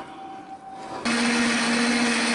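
A blender whirs steadily.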